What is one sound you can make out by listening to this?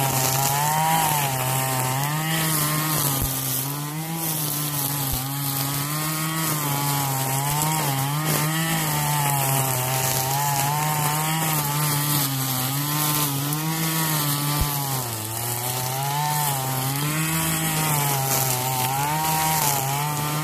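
A string trimmer line whips and cuts through thick grass.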